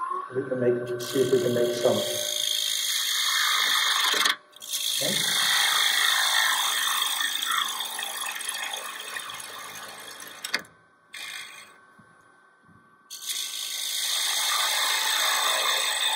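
A chisel scrapes and shaves spinning wood.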